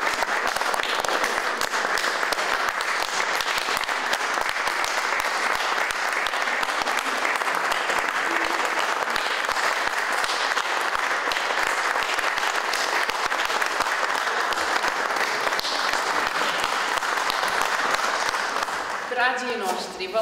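An audience applauds warmly in a hall.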